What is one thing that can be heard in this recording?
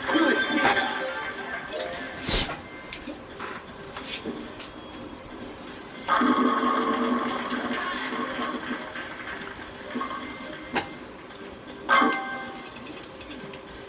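A short cheerful jingle plays from a video game through a television speaker.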